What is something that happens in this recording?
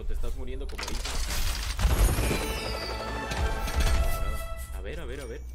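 A treasure box bursts open with a loud whoosh and bright chimes.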